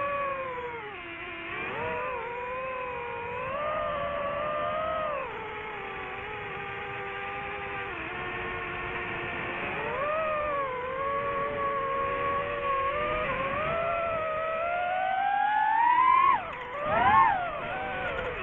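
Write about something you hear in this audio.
A drone's propellers whine close by, rising and falling in pitch.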